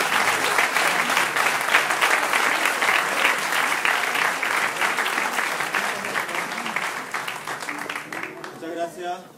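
A folk ensemble strums guitars and plucks a double bass in an echoing hall.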